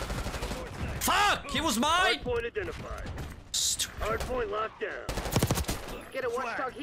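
A man talks excitedly into a microphone, close up.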